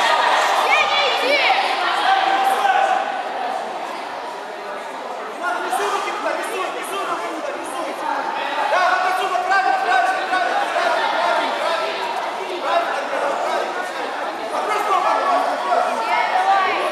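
Spectators, mostly men, shout and cheer encouragement in an echoing hall.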